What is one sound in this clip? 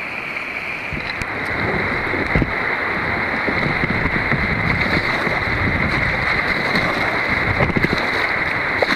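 Rapids rush and churn loudly nearby.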